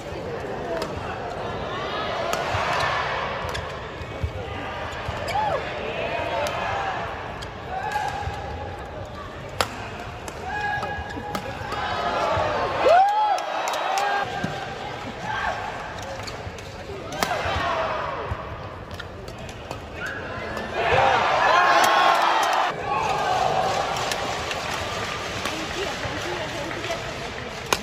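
A racket strikes a shuttlecock with crisp pops.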